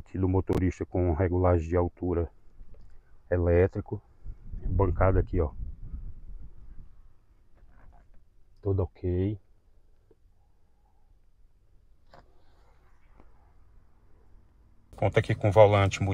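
A man talks calmly close to the microphone, in short bursts.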